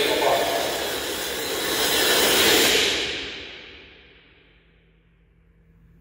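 A cymbal swells loudly and then fades away.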